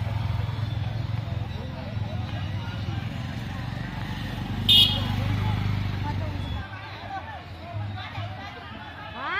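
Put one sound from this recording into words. A group of men and women chatter outdoors nearby.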